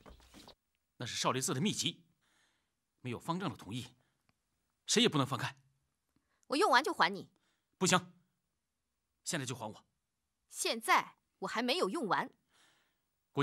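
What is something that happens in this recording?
A young man speaks firmly and urgently.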